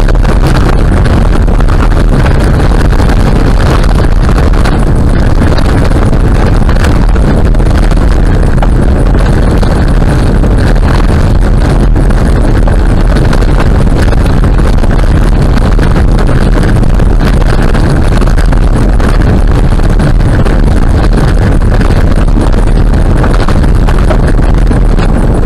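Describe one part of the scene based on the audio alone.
Tyres rumble and crunch steadily over a gravel road.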